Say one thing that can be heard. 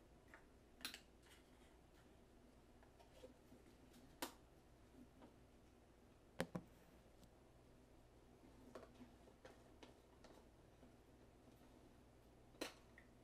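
Objects clink and knock on a hard surface nearby.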